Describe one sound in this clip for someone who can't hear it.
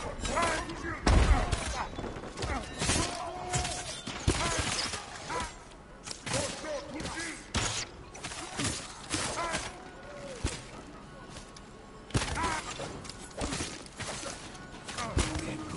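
Bows twang as arrows are loosed.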